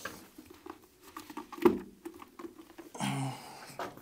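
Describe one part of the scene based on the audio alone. A plastic case clicks and rattles as a hand handles it.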